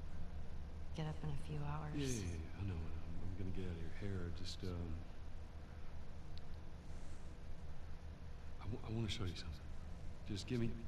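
A man speaks calmly and haltingly.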